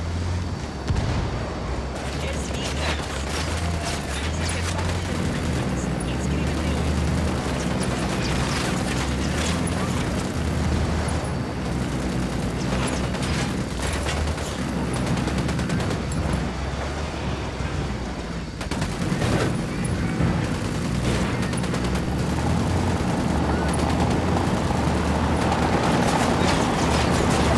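A truck engine roars steadily as it drives fast.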